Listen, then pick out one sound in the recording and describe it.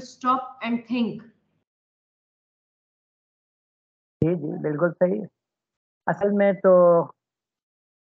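An elderly man speaks calmly in short phrases over an online call.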